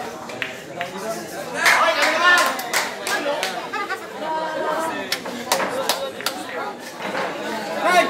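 Billiard balls click against each other on a pool table.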